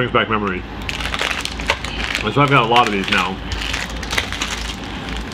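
A plastic wrapper crinkles in a man's hands.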